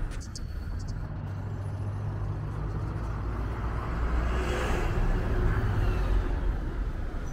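A bus engine rumbles as it pulls past.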